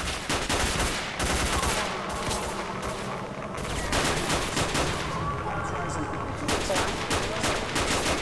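A rifle fires shots.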